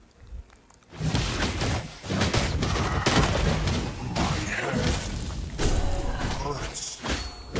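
Spell effects whoosh and crash loudly in a fight.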